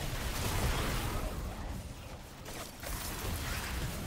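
Explosions burst with loud rumbling blasts.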